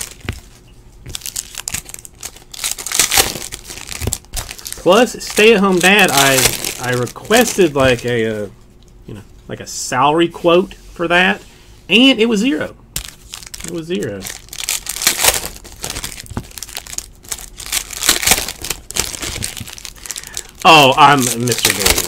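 Foil card wrappers crinkle and tear close by.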